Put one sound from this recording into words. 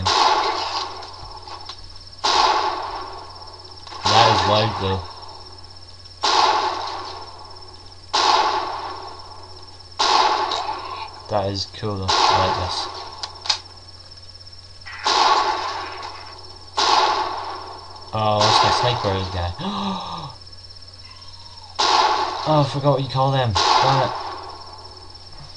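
Rifle shots fire one after another, each ringing out and fading.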